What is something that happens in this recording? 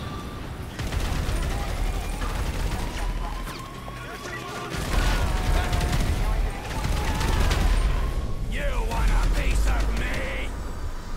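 Rapid gunfire rattles out in bursts.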